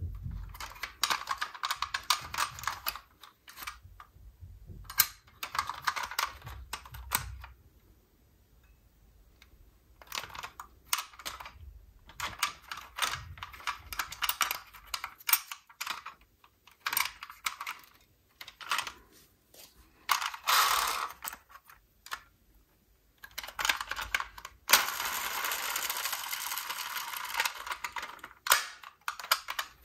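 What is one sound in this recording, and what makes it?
Small plastic parts of a toy truck click and tap as they are handled up close.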